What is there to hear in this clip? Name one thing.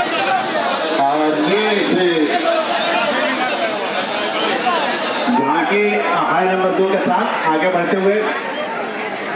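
A man's voice calls out loudly over the crowd.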